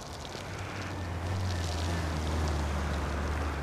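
A vehicle engine rumbles as it drives slowly by.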